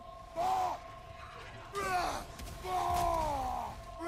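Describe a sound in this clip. Heavy blows strike with loud thuds and whooshes.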